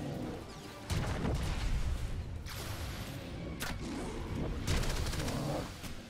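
Energy blasts crackle and boom.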